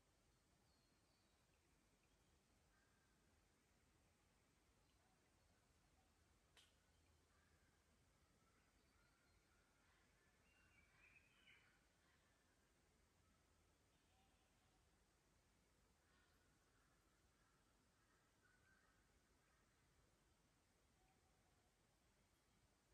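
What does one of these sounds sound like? A shallow creek trickles softly over stones.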